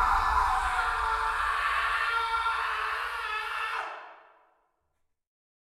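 A man screams loudly and fades away.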